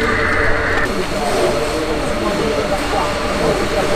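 Water sprays hard from a fire hose.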